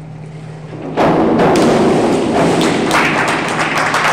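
A diver splashes into a pool.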